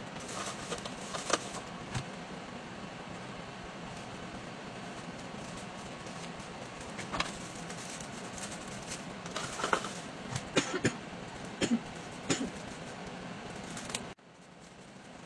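A heat sealer clicks and thumps as it presses down.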